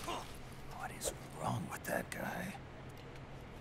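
A man asks a question in a puzzled voice.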